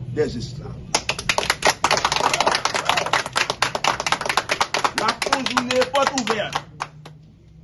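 A crowd claps and applauds loudly.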